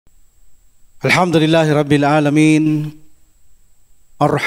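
A man chants in a steady, drawn-out voice through a microphone.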